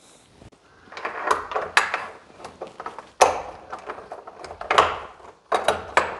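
A metal lock cylinder clicks and scrapes as it slides into a door.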